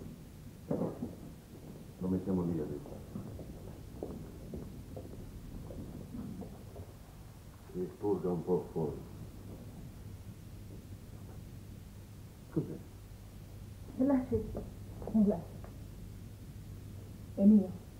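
A man speaks calmly and briefly, close by, with pauses.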